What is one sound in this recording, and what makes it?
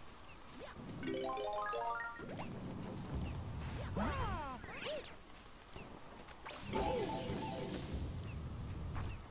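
Bright chiming game sound effects ring out in quick runs.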